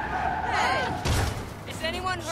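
A car crashes into a truck with a loud thud.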